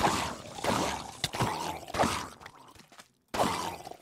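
Zombies groan nearby.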